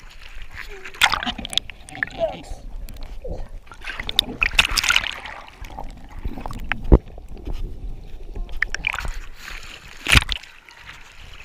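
Water churns and gurgles as a wave rolls over, heard muffled underwater.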